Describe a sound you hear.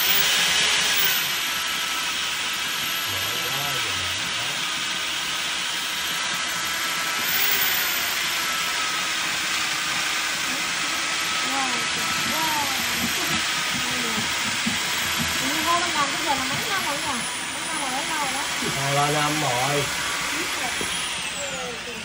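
A drain cleaning machine whirs steadily as a cable feeds into a floor drain.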